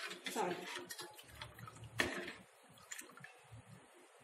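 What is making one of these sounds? A metal spoon stirs liquid and clinks against a pot.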